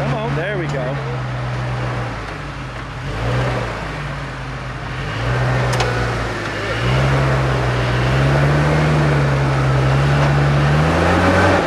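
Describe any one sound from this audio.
Tyres grind and scrape over rock.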